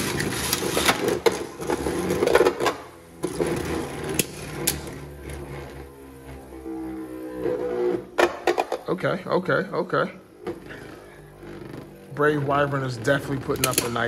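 Spinning tops knock together with sharp clicks.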